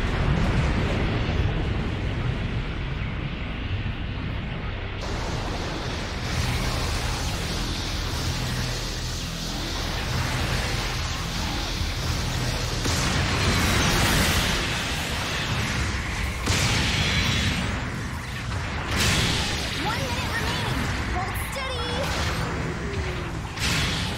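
Energy weapons fire in quick zaps.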